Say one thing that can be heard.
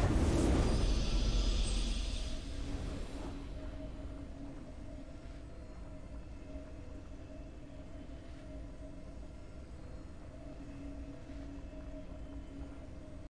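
A triumphant victory fanfare plays softly and holds steady.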